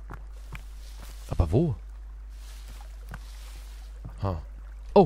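Footsteps crunch through leafy undergrowth.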